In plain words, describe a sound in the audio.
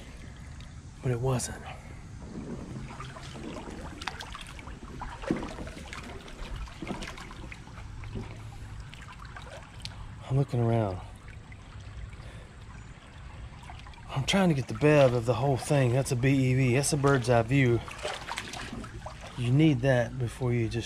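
Shallow water trickles and babbles over stones.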